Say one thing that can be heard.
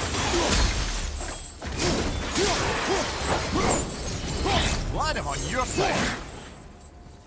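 Heavy blows and fiery blasts crash in a fight.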